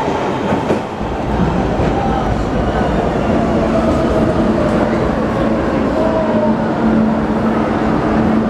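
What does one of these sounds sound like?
A subway train rumbles and whines as it rolls into an underground station.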